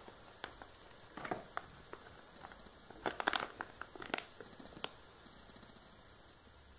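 A plastic bag crinkles in handling.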